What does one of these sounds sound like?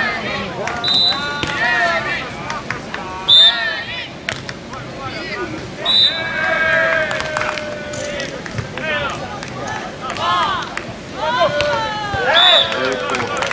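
A volleyball is hit with a dull slap.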